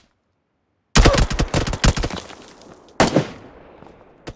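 Rapid gunfire rattles in loud bursts and echoes.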